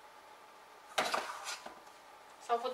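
Metal utensils clatter against pans.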